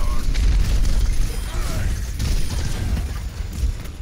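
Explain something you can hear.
A robot is smashed apart with a heavy crash.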